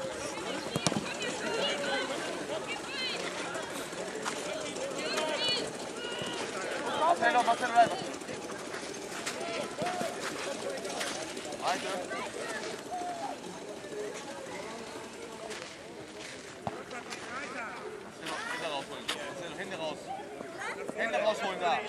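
Boys shout to one another outdoors, some distance away.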